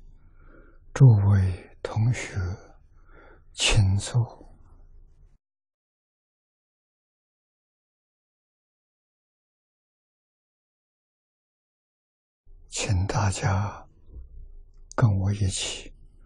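An elderly man speaks calmly into a microphone, pausing between short phrases.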